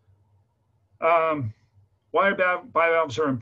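An elderly man speaks calmly through a microphone on an online call.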